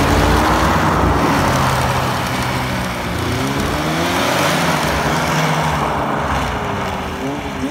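Snowmobile tracks spray and scrape across ice.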